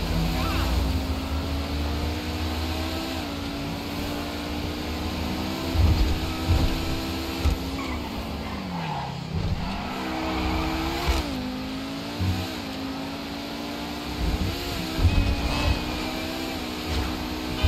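A car engine roars steadily, its pitch rising and falling as the car shifts gears.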